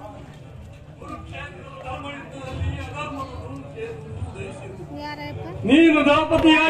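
A man on stage speaks dramatically through a loudspeaker.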